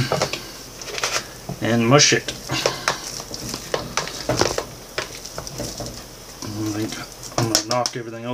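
A fork mashes food against a glass bowl, clinking and scraping.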